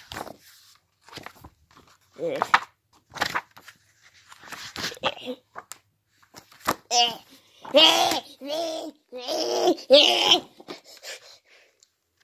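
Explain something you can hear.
Paper pages rustle and flap as they are handled.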